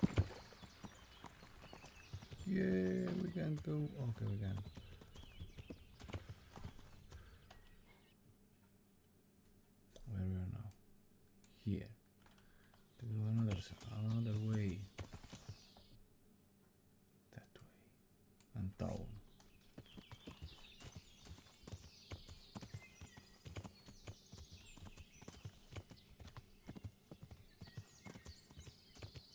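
Horse hooves thud steadily on soft ground.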